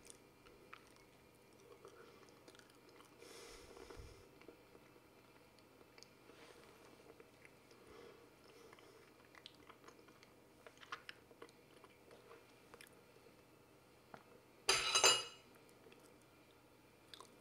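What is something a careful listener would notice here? A man chews food with soft smacking sounds close by.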